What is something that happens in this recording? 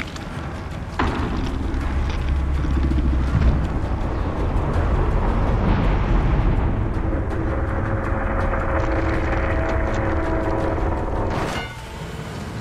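A deep, eerie rumble swells and then cuts off.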